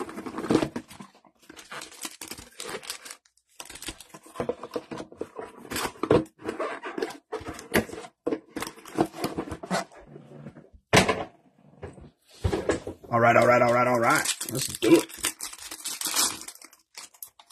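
Plastic card packs crinkle and rustle as they are handled.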